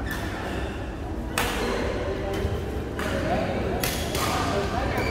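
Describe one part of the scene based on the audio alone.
Men talk casually in a large echoing hall.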